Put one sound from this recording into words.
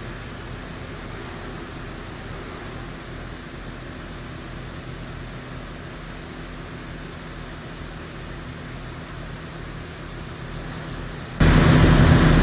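A truck engine drones steadily, heard from outside.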